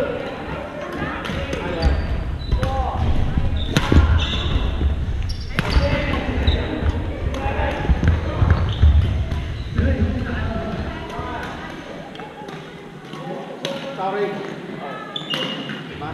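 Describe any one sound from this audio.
A crowd of players talks and calls out in the distance.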